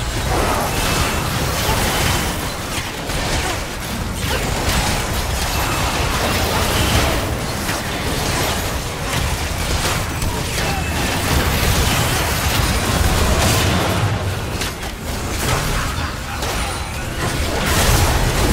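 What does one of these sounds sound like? Game spell effects whoosh and crackle in a fast battle.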